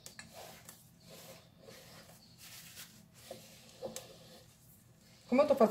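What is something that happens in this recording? Plastic gloves rustle softly as hands brush crumbs away.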